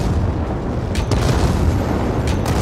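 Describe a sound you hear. A fiery blast bursts with a loud crackling roar.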